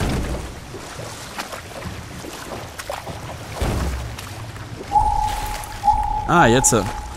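Water splashes as an oar rows a wooden boat.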